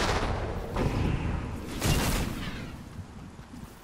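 A sudden whoosh sweeps past.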